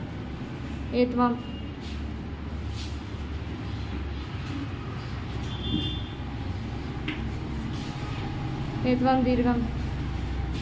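A young boy speaks briefly, close by.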